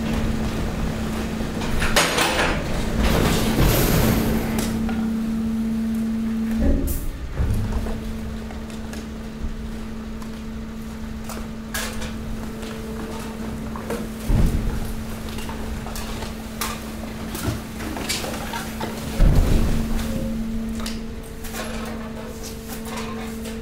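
A machine hums steadily.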